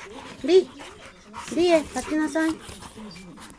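Dogs yelp and whine in short high cries.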